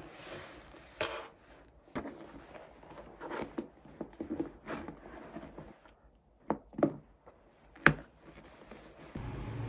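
A leather bag rustles and its clasp clicks as it is handled.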